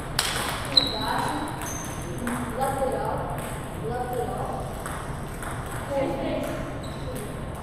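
Men talk in the background.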